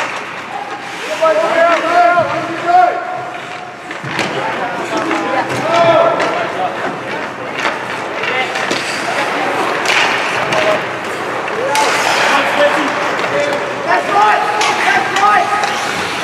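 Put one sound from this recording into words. Young men shout to each other across a large echoing rink.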